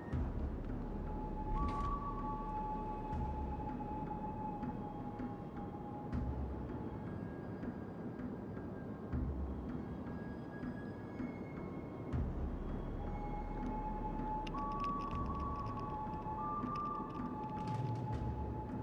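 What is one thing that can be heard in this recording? Water rushes and splashes along a ship's hull.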